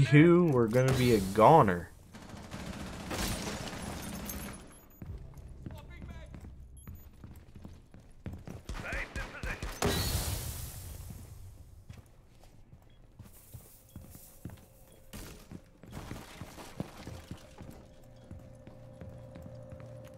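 Footsteps thud on wooden floors.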